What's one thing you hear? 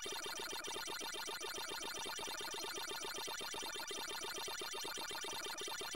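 Electronic arcade game chomping sounds repeat rapidly.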